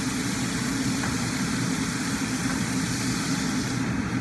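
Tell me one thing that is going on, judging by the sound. A metal pot lid clinks against a pot.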